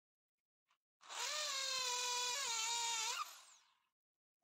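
An electric drill whirs loudly into wood.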